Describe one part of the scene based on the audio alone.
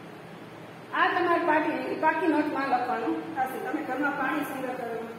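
A young woman speaks clearly and with animation, close by.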